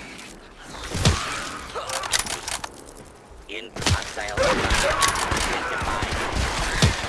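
A rifle fires single shots.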